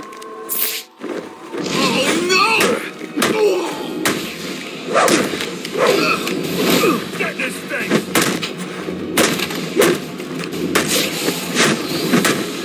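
Punches and kicks land with heavy thuds in a brawl.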